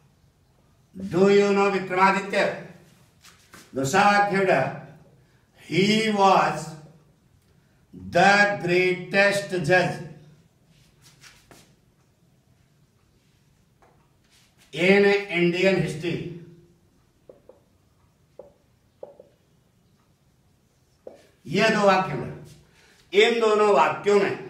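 A man speaks clearly and calmly in short phrases, close by.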